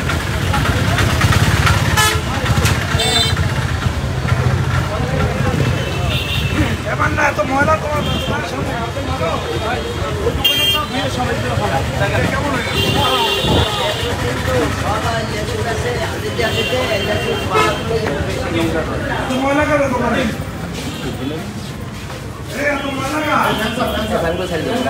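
Several men talk at once, close by.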